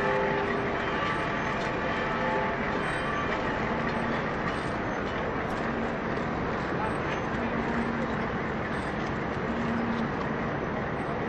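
A group of men chant together in a low, steady drone.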